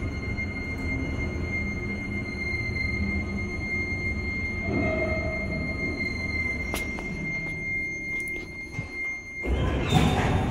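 An elevator car rumbles steadily as it travels.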